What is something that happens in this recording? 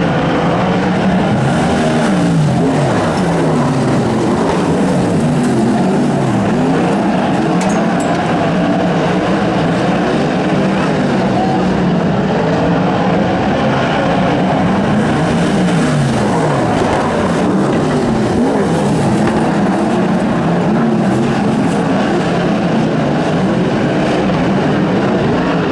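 Racing car engines roar and whine loudly as they rev up and down.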